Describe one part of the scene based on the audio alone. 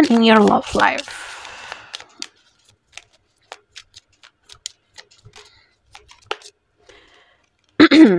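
Cards riffle and flick as a deck is shuffled.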